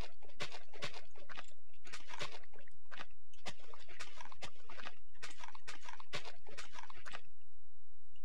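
A shovel digs into dirt with quick, repeated crunching scrapes.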